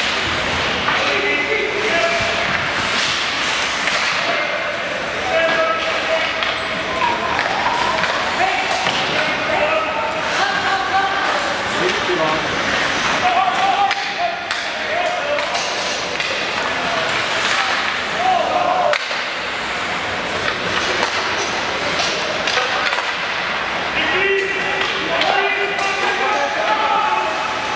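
Spectators call out and chatter loudly nearby.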